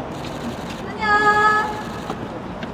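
A young woman sings loudly through a loudspeaker.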